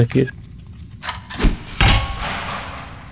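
A heavy door bangs open.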